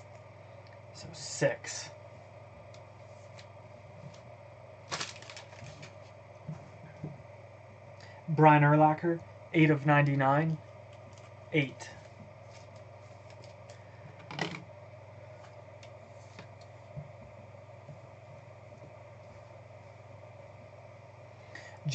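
Plastic card sleeves rustle and click as cards are handled.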